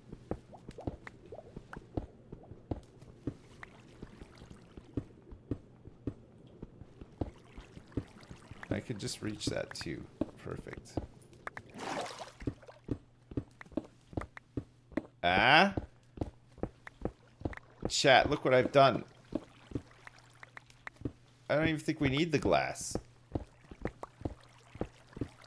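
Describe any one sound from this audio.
A pickaxe taps rapidly at stone blocks.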